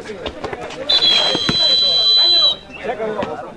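A referee blows a whistle with a long shrill blast.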